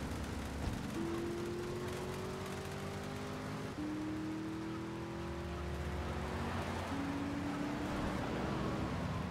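A car engine revs and climbs in pitch as a car speeds away.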